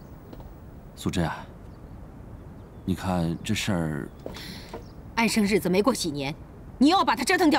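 A middle-aged woman speaks nearby, urgently and with emotion.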